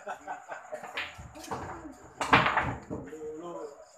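Pool balls click together as a cue strikes.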